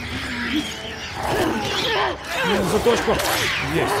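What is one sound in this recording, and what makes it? Blows thud during a struggle.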